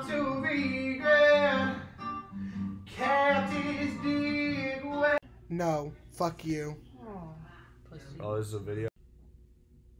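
A young man sings loudly close by.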